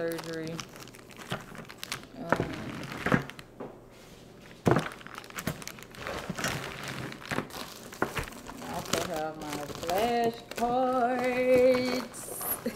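Plastic wrap crinkles and rustles.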